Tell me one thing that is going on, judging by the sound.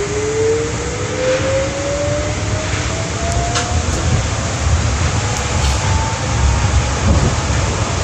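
A train's electric motor whines, rising in pitch as the train speeds up.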